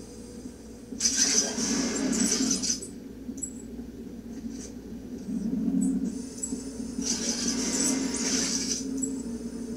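Bursts of rushing noise come from a television during gameplay.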